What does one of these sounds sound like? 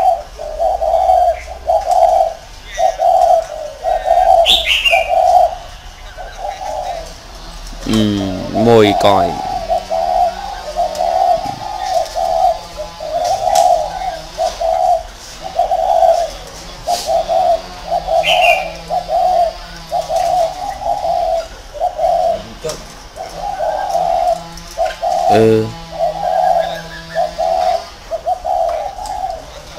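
Doves coo over and over in a soft, steady rhythm.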